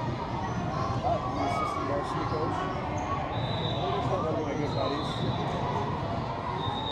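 A crowd of children and adults chatter in a large echoing gym.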